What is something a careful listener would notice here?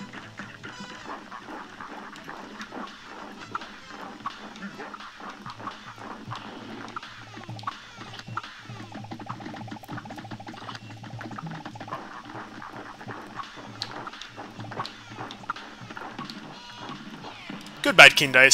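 Game music plays with a bouncy brass band.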